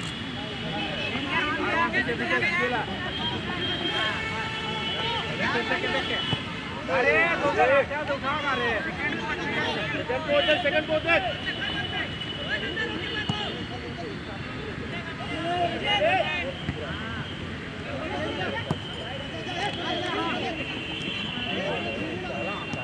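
Young players shout and call out to each other across an open field.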